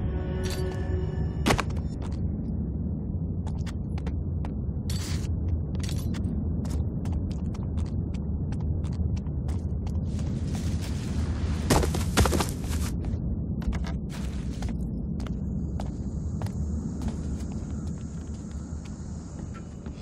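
Footsteps thud softly on wooden boards.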